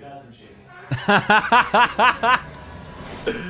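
A young man laughs loudly into a microphone.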